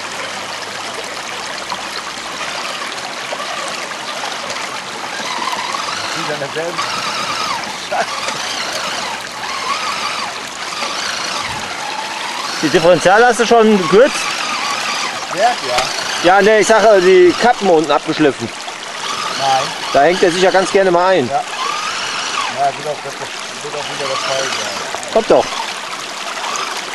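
A small electric motor whines as a toy truck drives through water.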